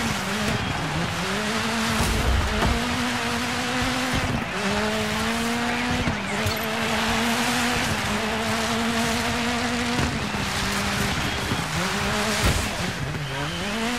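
Tyres skid and hiss on a wet surface.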